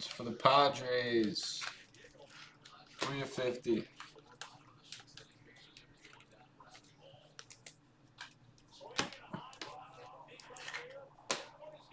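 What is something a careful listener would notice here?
Trading cards flick and rustle as they are shuffled by hand.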